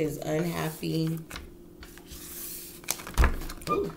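Playing cards riffle and rustle as they are shuffled.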